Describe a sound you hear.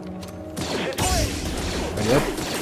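A lightsaber ignites with a crackling hum.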